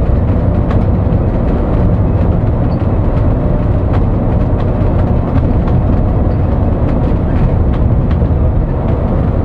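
Tyres rumble low and steadily on the road.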